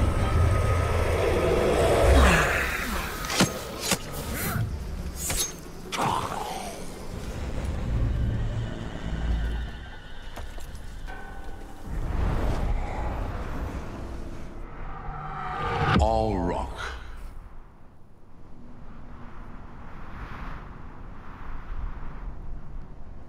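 A man talks calmly into a microphone.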